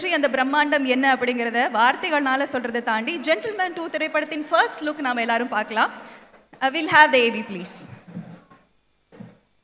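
A young woman speaks with animation through a microphone and loudspeakers.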